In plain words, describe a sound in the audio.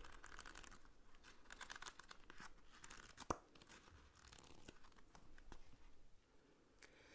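Book pages riffle and flutter as they are flipped close by.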